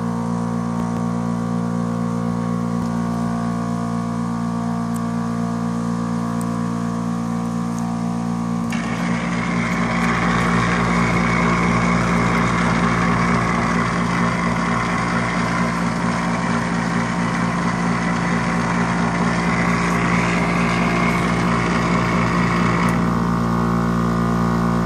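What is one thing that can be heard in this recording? A machine's fan and motor hum steadily close by, growing louder and rushing partway through.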